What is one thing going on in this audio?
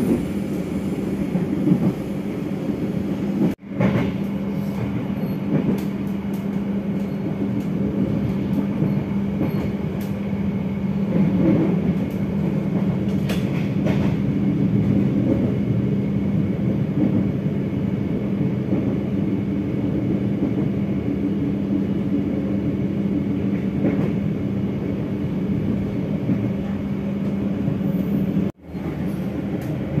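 A train rumbles steadily along the rails with a low hum.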